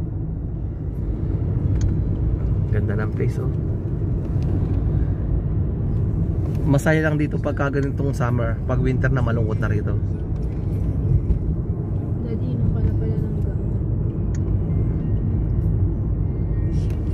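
A car drives along a road with a steady low rumble.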